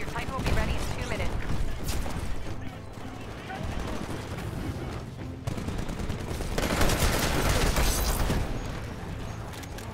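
A young man talks through a microphone.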